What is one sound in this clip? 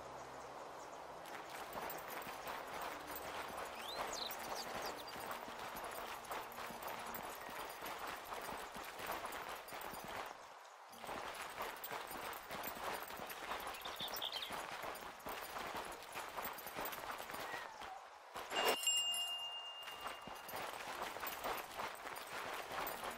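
Footsteps rustle quickly through tall grass.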